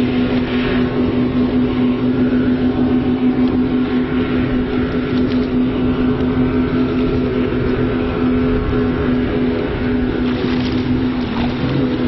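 A motorboat engine drones steadily across the water.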